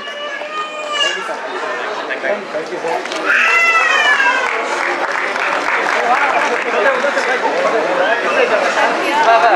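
A crowd chatters and cheers loudly in a large echoing hall.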